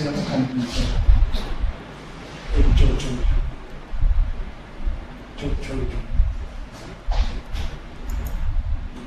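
A man speaks steadily through an online call.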